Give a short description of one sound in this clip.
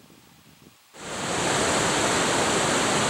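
Rapids rush and roar loudly over rocks.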